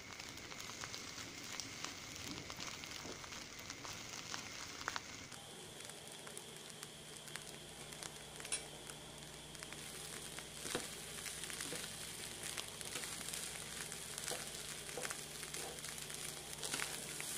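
Rice sizzles and crackles in a hot pan.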